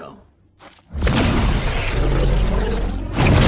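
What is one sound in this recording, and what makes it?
Crackling energy roars and surges loudly.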